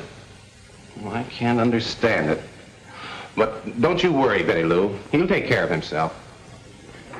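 A middle-aged man speaks firmly and with urgency.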